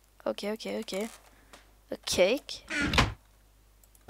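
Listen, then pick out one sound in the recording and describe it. A wooden chest lid shuts with a soft thud.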